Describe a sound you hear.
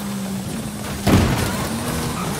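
A car lands hard with a heavy thud.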